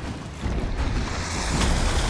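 A blast of magic whooshes through the air.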